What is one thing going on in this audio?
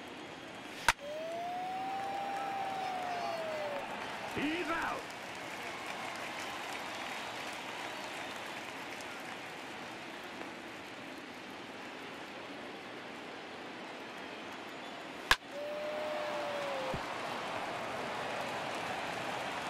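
A crowd cheers louder after the hit.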